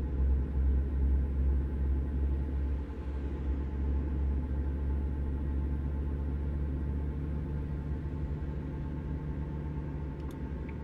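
A truck engine drones steadily at a low pitch while driving on a highway.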